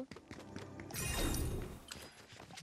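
A bright burst of sparkly magic crackles.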